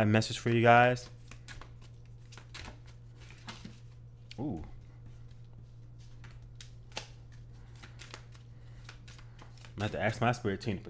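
Playing cards are shuffled, riffling and flicking against each other.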